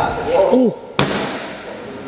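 A heavy ball thuds onto a concrete floor.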